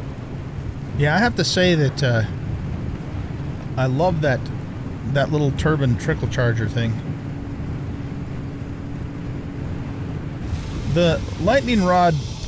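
An elderly man talks through a headset microphone.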